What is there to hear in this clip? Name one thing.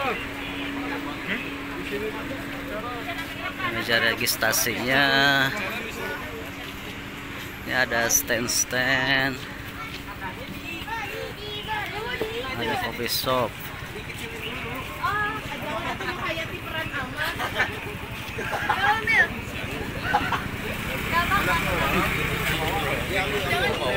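A crowd of adults and children chatter outdoors.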